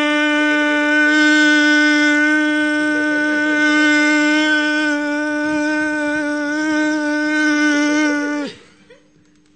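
A man sings one long, steady, loud note into a microphone.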